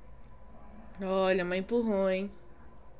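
A young woman exclaims briefly in surprise, close to a microphone.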